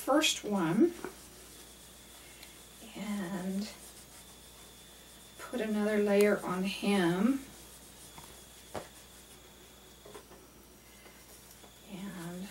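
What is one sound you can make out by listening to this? A middle-aged woman talks calmly close to a microphone.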